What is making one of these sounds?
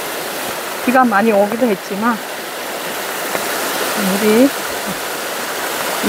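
A stream rushes and splashes over rocks close by.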